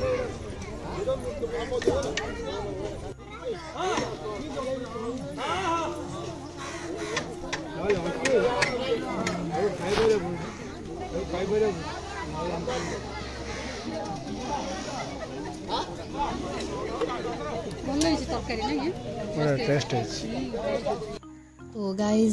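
Several men and women talk outdoors nearby.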